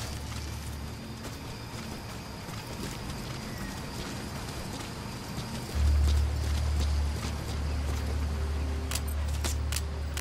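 Leaves and grass rustle as a body pushes through them.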